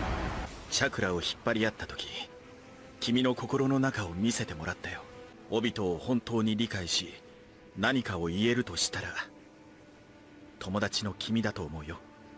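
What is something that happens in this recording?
A young man speaks calmly and earnestly.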